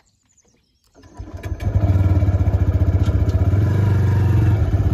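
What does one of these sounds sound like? A motorcycle engine idles with a steady low throb.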